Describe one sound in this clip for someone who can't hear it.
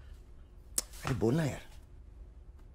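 A man speaks briefly and firmly nearby.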